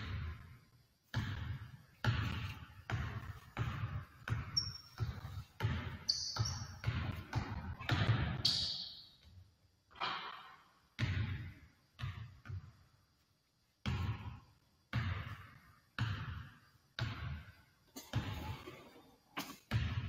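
A basketball is dribbled on a hardwood floor, each bounce echoing in a large empty hall.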